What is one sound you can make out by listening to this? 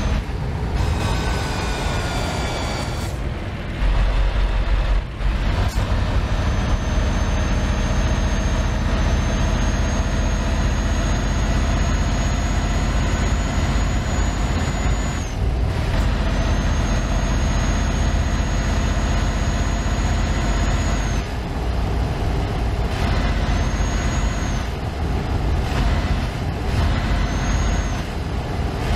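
A truck engine hums steadily with a deep drone.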